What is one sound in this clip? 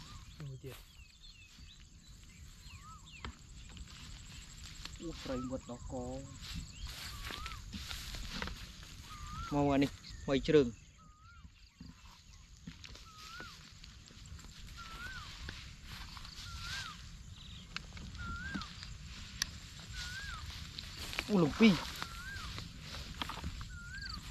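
Dry grass rustles underfoot.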